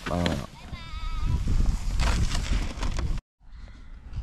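A sled scrapes across snow.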